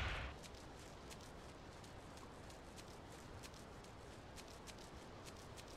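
A man's footsteps patter on grass as he runs.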